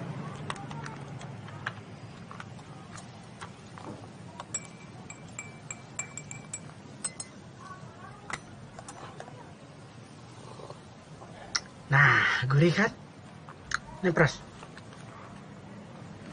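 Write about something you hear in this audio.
Glasses and bottles clink as drinks are poured.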